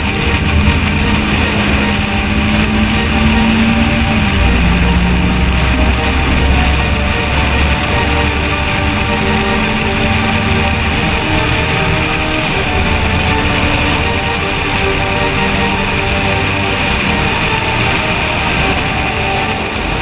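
Wind rushes past the outside of a fast-moving car.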